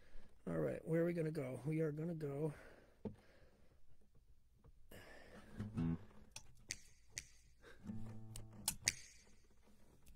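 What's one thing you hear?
An acoustic guitar is strummed and plucked close by.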